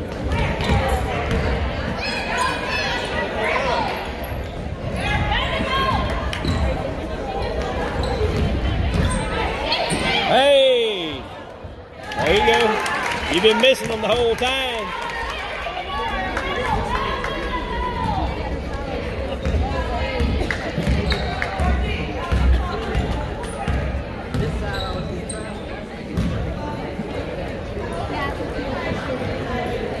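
Spectators chatter and call out in an echoing gym.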